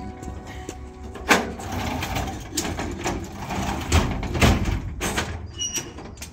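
A metal trailer door rattles and clanks as it is handled.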